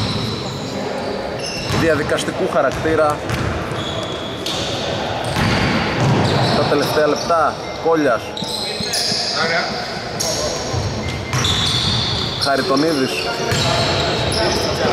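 A basketball bounces on the floor, echoing in a large hall.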